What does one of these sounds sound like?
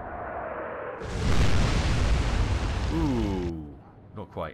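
Shells crash into the sea with a roaring splash.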